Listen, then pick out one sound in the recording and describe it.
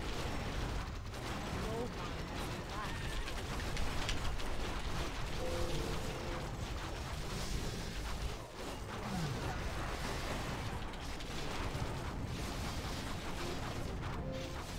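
Game battle sounds clash and clatter continuously.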